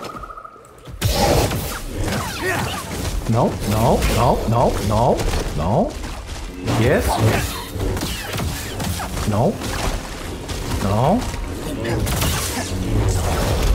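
A beast snarls and roars.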